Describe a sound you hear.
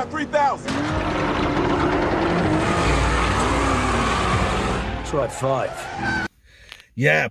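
Car tyres screech loudly.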